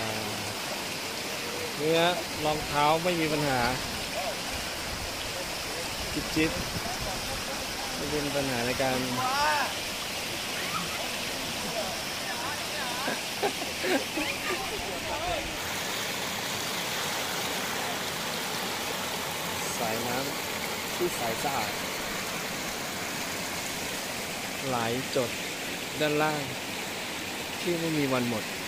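A river rushes and splashes over rocks outdoors.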